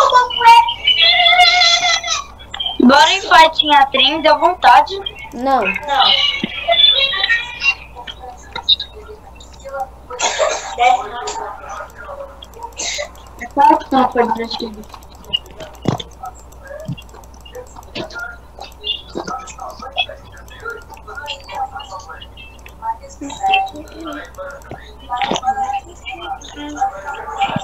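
A boy speaks with animation, close to a microphone.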